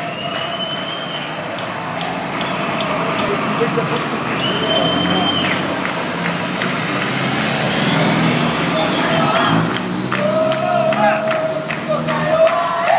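A bus engine rumbles as a bus drives past close by.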